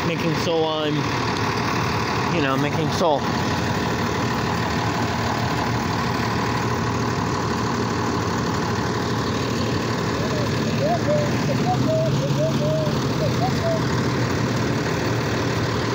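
A garbage truck's diesel engine rumbles and idles close by.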